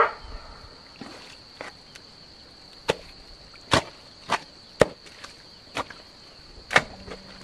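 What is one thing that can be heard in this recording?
A shovel scrapes and slaps through wet mud.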